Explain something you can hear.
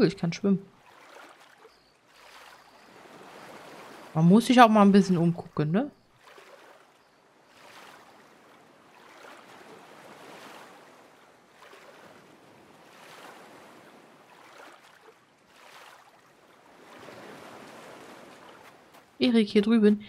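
Water splashes with steady swimming strokes.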